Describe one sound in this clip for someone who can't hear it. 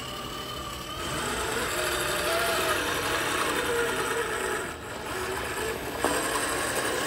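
Plastic tyres grind and crunch over loose gravel.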